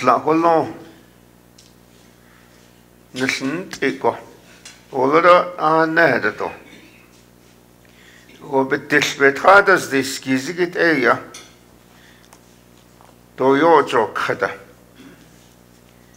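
An elderly man speaks calmly through a microphone, pausing between phrases.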